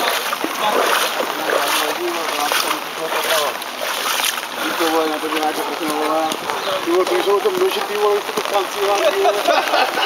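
Men talk loudly outdoors nearby.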